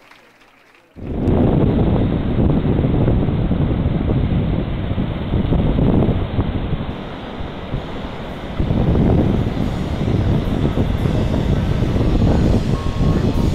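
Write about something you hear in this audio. Waves wash onto a sandy shore, with a loud rushing outdoors.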